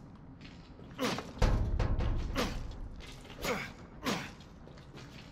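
Wooden boards smash and splinter.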